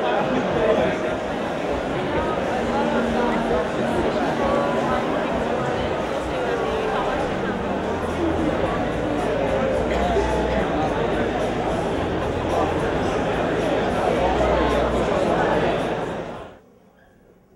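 A crowd of young people chatters loudly.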